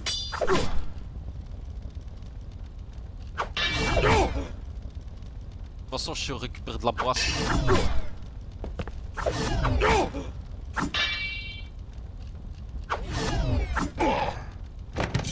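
Steel swords clash and ring in a duel.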